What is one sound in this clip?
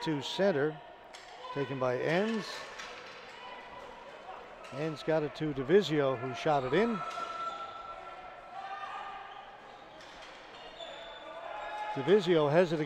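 Players' sticks clack and a ball bounces on the floor in a large echoing arena.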